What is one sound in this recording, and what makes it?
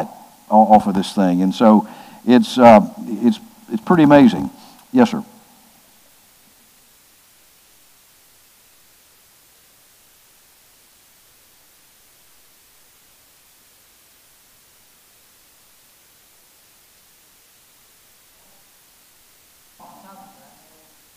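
An older man speaks calmly into a headset microphone.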